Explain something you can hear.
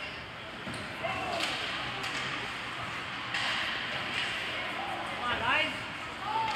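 Players call out across a large echoing rink.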